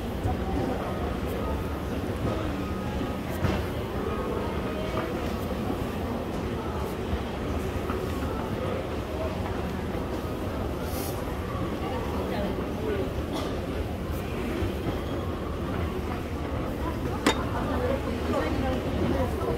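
Footsteps tap on metal escalator steps.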